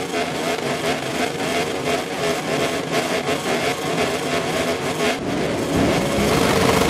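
Motorcycle engines idle and rev.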